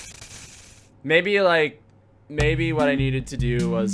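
Electronic game music plays with beeping tones.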